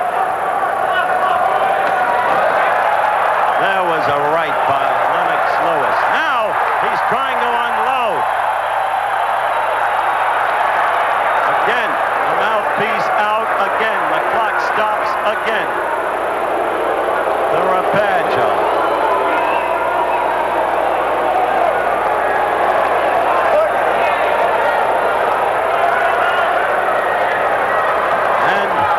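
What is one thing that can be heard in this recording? A large crowd murmurs and cheers steadily in an echoing arena.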